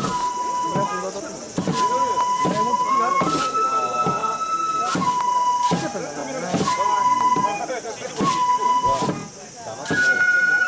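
Wooden sticks knock sharply against the ground.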